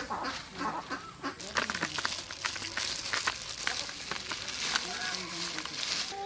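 Small fish patter onto a leaf.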